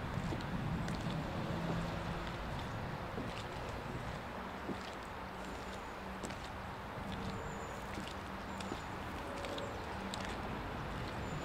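Footsteps crunch on a path scattered with dry leaves.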